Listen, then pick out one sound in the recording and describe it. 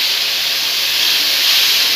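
Hot water pours into a pan.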